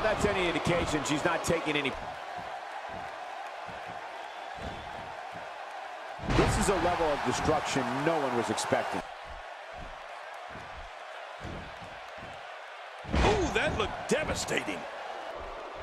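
Bodies slam heavily onto a wrestling ring mat with loud thuds.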